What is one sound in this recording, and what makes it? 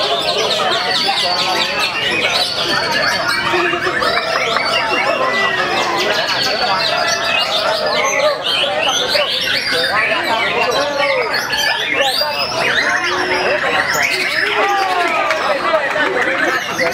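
Many caged birds chirp and sing loudly all at once, close by.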